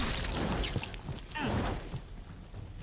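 Debris bursts and scatters with a sharp crash.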